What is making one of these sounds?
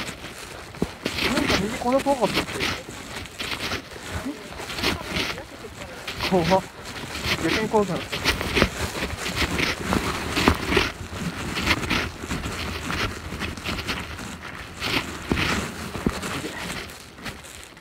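Footsteps crunch through dry leaves on a path.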